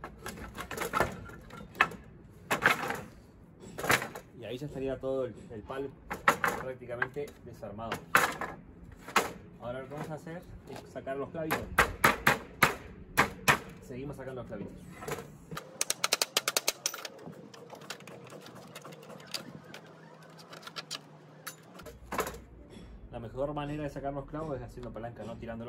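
Wooden boards knock and clatter as they are moved.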